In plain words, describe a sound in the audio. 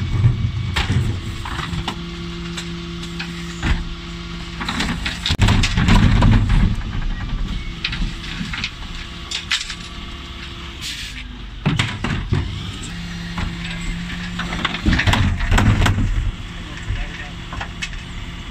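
A garbage truck engine hums steadily.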